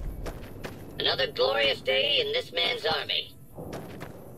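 A robotic male voice speaks through a speaker.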